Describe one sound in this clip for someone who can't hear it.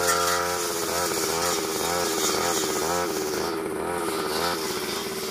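A two-stroke brush cutter whines as it cuts through grass.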